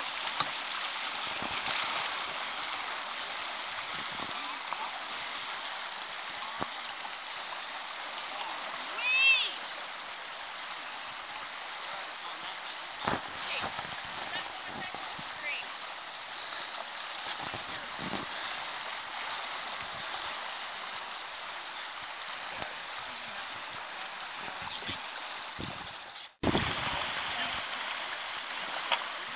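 A river rushes and ripples steadily nearby.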